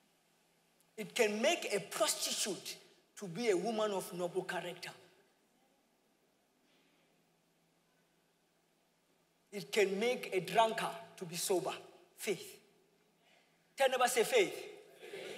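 A man speaks with animation through a microphone, in a large echoing hall.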